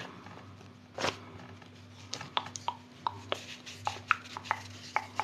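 Soft pads tap and brush lightly with small clicks.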